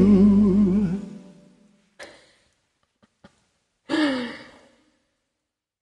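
A man sings with a wavering voice, heard through a microphone.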